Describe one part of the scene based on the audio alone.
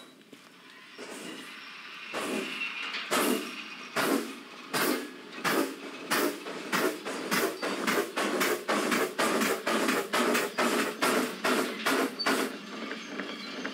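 A steam locomotive chuffs in a steady, quickening rhythm.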